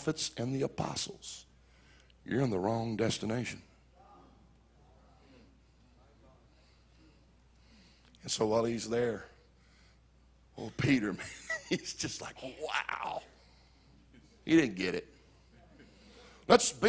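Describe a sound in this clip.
An older man preaches with animation into a microphone, his voice ringing through a large echoing hall, with long pauses between bursts.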